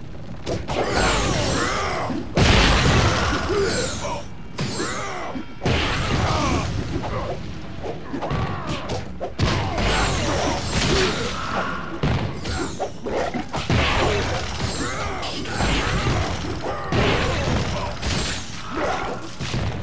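Magic blasts whoosh and crackle.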